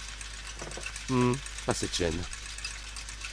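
Gears turn with a mechanical whirring.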